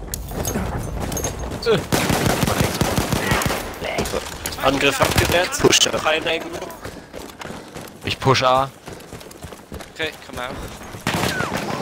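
Footsteps thud on sandy ground as a soldier runs.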